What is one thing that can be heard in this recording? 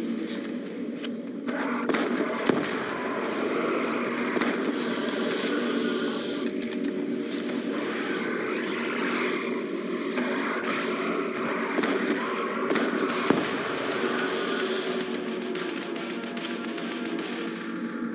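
Shotgun blasts boom repeatedly.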